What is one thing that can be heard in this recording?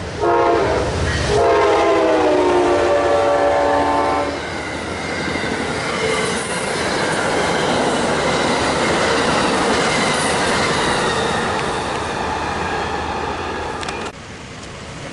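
A passenger train rushes past with a loud rumble and clatter of wheels.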